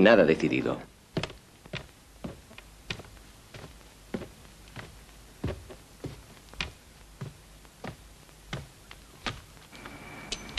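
Footsteps tap on wooden stairs.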